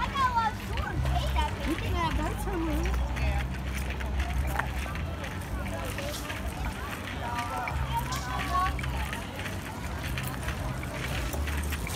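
People chatter faintly in the distance outdoors.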